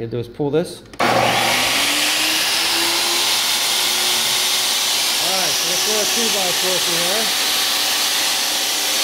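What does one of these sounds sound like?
A table saw motor starts and whirs loudly and steadily.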